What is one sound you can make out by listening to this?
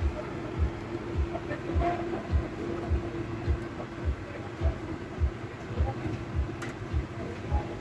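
A basting brush dabs and scrapes against metal.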